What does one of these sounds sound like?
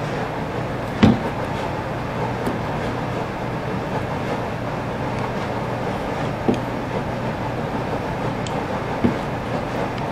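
Small plastic parts click and rattle as hands fit them together.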